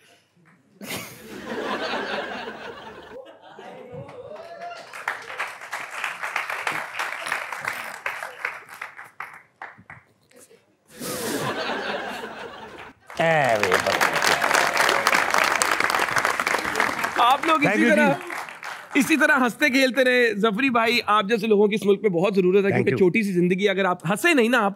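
A middle-aged man sings with animation.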